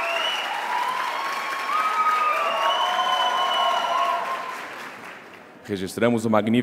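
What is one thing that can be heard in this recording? A large crowd cheers and sings loudly in a big hall, then fades.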